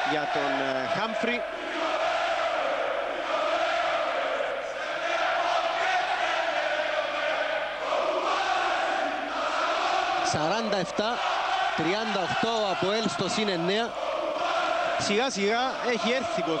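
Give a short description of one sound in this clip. A large crowd chants and cheers loudly in an echoing hall.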